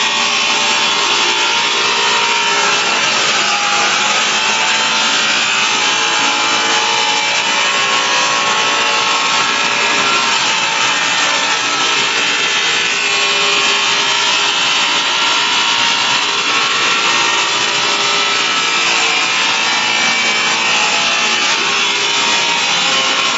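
A power sander grinds steadily against a hard surface.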